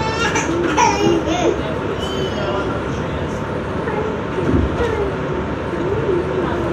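Train wheels squeal and whine against the rails.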